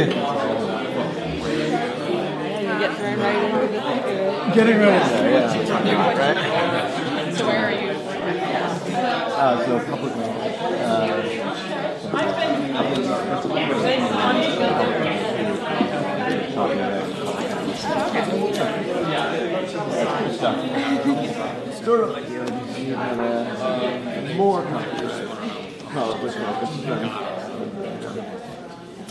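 A crowd of men and women chatter all around in a large room.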